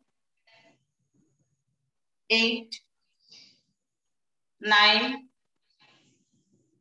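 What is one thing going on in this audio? A woman speaks calmly, giving short spoken instructions close by.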